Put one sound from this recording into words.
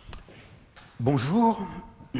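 A man speaks loudly in an echoing hall.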